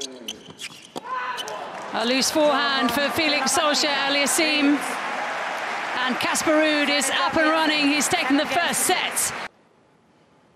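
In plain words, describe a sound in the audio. A crowd cheers and whistles loudly in a large hall.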